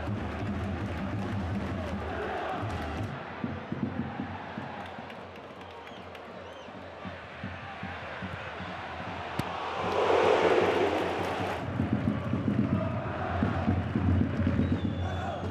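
A large stadium crowd roars and cheers outdoors.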